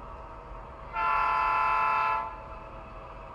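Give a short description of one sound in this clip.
A model locomotive sounds a loud horn blast.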